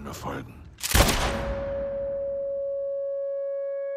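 A gunshot bangs loudly and rings out.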